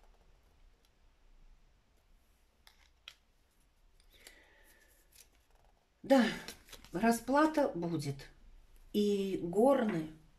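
A playing card is laid down on a table with a soft slap.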